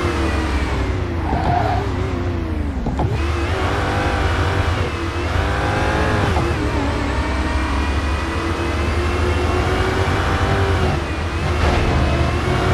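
A supercharged V8 sports car engine drops in pitch as it downshifts.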